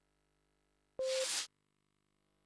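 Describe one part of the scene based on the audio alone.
A game menu gives a short, loud confirming burst as start is selected.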